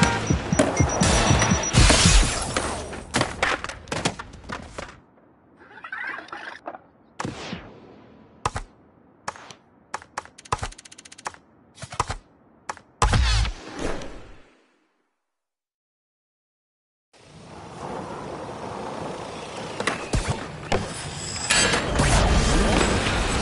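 Skateboard wheels roll and grind on concrete and rails.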